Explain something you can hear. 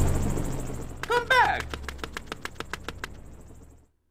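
A quick descending game sound effect plays with fast, fading repeats.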